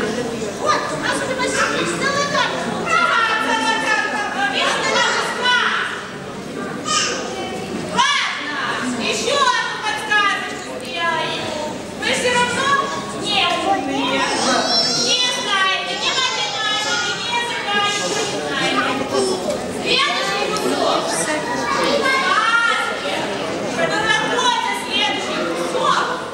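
A woman speaks in a high, playful voice in an echoing hall.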